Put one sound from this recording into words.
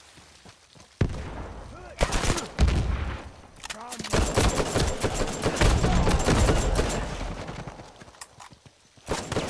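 Rapid gunfire crackles in bursts, loud and close.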